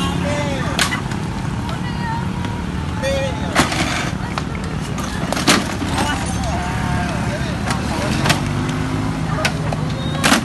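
A motorbike scrapes and clunks on pavement as a man lifts it.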